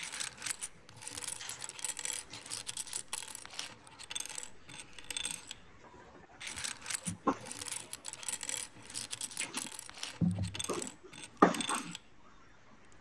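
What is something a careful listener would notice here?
Small plastic bricks rattle and click as hands sort through them.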